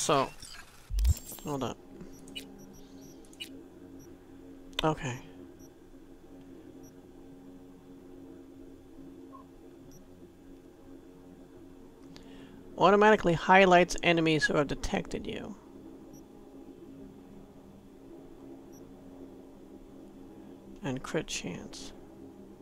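Soft electronic menu clicks and blips sound now and then.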